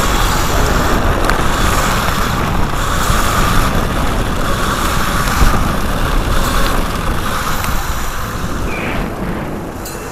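Wind rushes loudly past the microphone.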